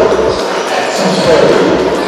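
A man announces over a loudspeaker.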